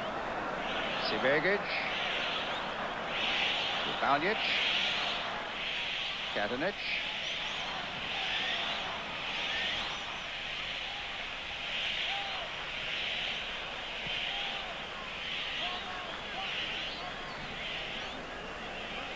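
A large crowd murmurs and roars in an open stadium.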